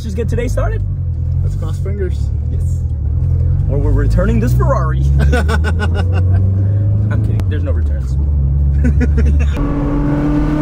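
Young men talk and laugh loudly inside a car.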